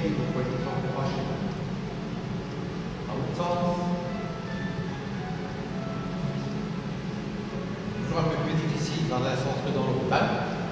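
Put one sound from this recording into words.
An older man speaks calmly in an echoing hall.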